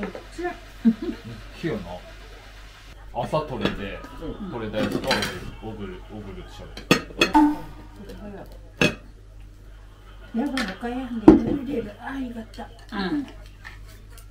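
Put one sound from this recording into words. Oyster shells clatter and knock on plates.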